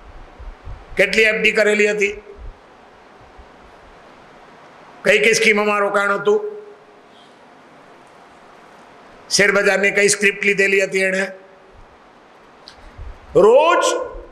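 An elderly man speaks with emphasis into a microphone, in bursts with pauses.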